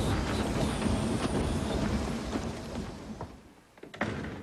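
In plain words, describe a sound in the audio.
A train rattles and rumbles along.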